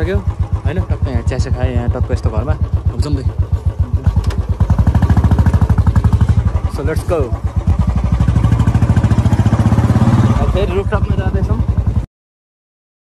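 A motorbike engine chugs steadily up close.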